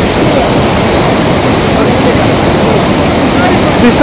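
A river rushes below a bridge.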